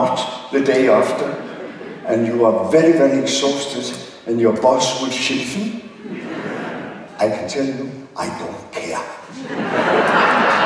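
An elderly man speaks animatedly into a microphone in a large hall.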